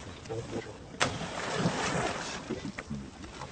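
Leaves and grass rustle as a monkey shifts about.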